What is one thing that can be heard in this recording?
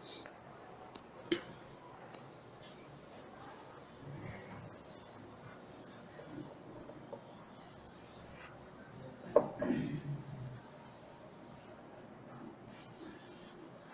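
A cloth rubs across a chalkboard.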